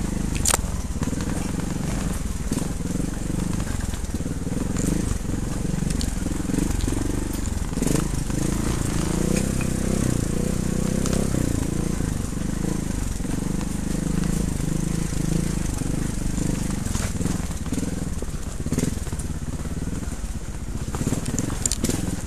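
A motorbike engine drones close by, rising and falling as the throttle changes.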